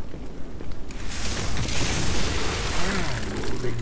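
Blades clash and swoosh in a fight.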